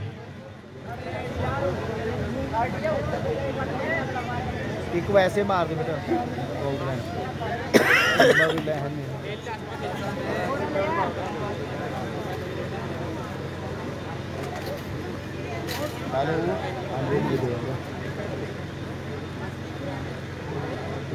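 A crowd of men talks and shouts outdoors.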